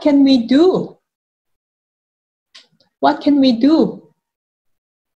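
A young woman speaks clearly and expressively into a close microphone, as in an online call.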